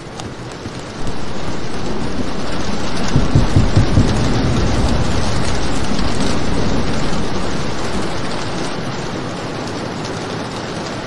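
Heavy rain pours steadily outside a window.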